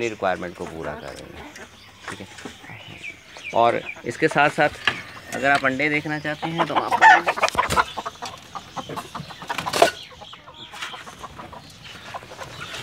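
Chickens cluck and squawk close by.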